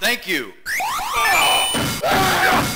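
Electronic game sound effects chirp and sweep.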